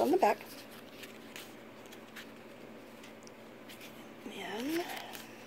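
Stiff paper pages rustle and tap as a hand flips through a small album.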